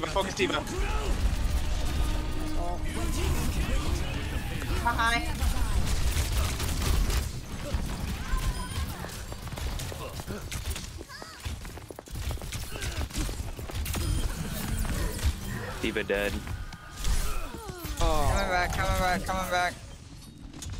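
Electronic game effects whoosh and zap.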